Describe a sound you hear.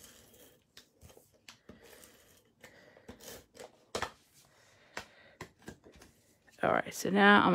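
Paper rustles and taps softly as it is handled.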